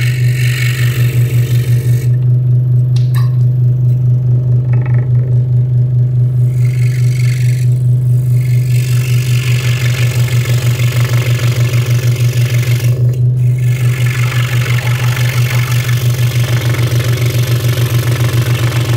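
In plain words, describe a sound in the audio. A scroll saw hums and chatters steadily as its blade cuts through thin wood.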